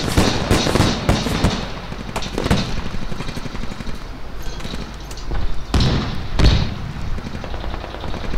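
A weapon clicks and clanks as it is handled.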